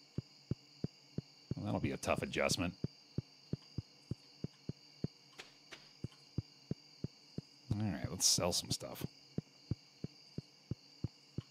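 Quick, even footsteps tap along steadily.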